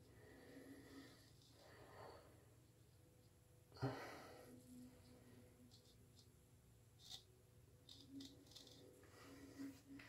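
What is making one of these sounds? A straight razor scrapes through stubble close by.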